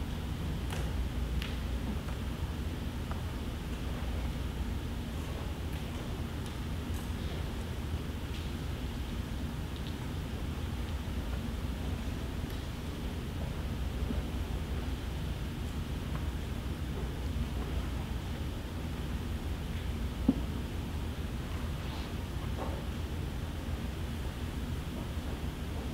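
An audience in a large hall shifts and rustles faintly.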